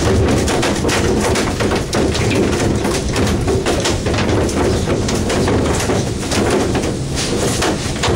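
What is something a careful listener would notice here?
A wet line is hauled over a boat's side.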